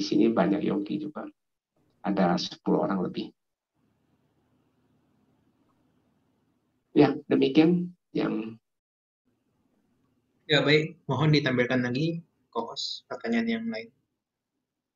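A man speaks calmly into a microphone, heard through an online call, with pauses.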